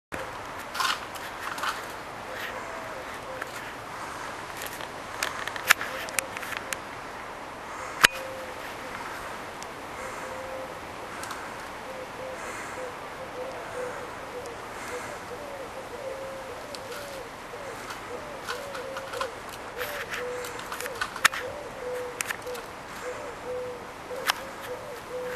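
A wire cage rattles and clinks as a cat paws at it.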